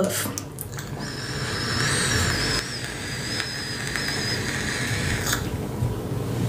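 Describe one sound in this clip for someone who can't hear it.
A young woman draws a long hissing breath through a vape.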